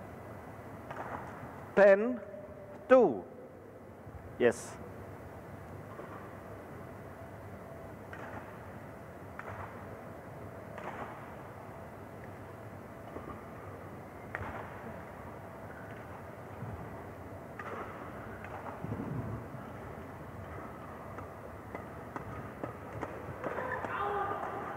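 Shuttlecock hits crack sharply from rackets in a rally.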